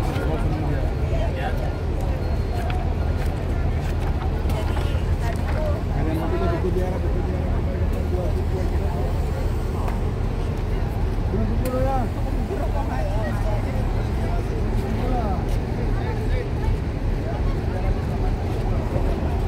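A crowd of men and women chatters nearby outdoors.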